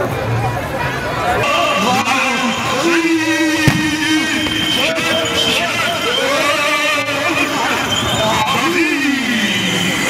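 A crowd cheers and ululates loudly outdoors.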